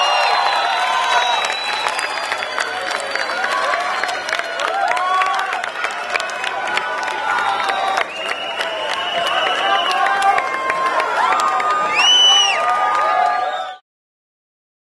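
A rock band plays live music loudly.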